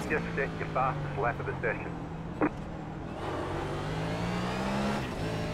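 A race car engine drones steadily at high revs.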